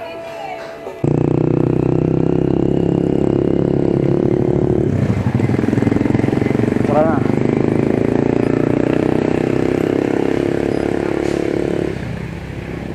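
A motor tricycle's engine putters ahead.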